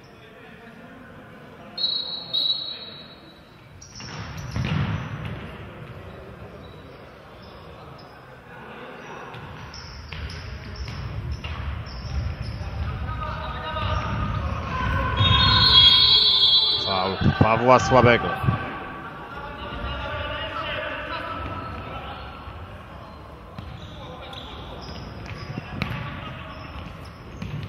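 Shoes squeak on a wooden court in a large echoing hall.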